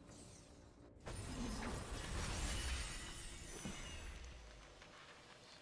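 A magical portal opens with a loud, rushing whoosh.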